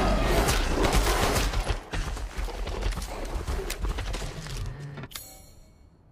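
A pistol is reloaded with a metallic click.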